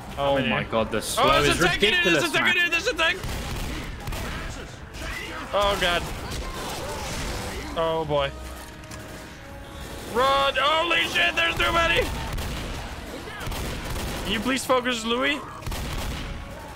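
Shotgun blasts fire in quick bursts.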